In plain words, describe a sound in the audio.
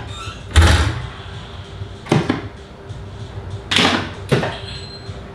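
A pinball machine plays bright electronic sound effects and music.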